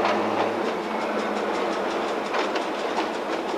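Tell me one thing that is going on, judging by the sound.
A train engine rumbles nearby.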